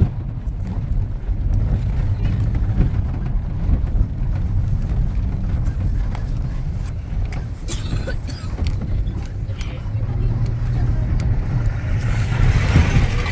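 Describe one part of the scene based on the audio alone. A vehicle engine rumbles low and steady while driving over a rough dirt track.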